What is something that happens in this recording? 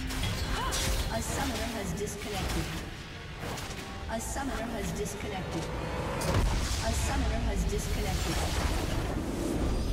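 Game spell effects crackle and whoosh in a fight.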